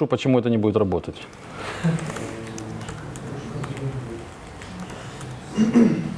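Laptop keys click as a man types.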